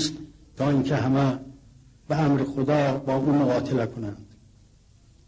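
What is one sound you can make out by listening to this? An elderly man speaks slowly and gravely into a microphone.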